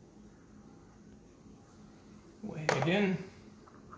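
A glass jar is set down on a hard surface.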